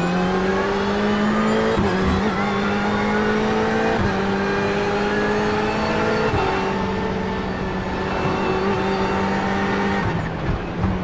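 A race car engine roars at high revs, rising in pitch and dropping sharply at each gear change.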